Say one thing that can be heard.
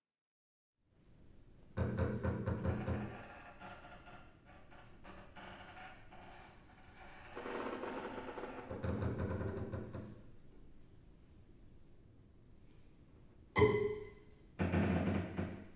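A string trio plays a modern piece in bursts of bowed and scraped notes.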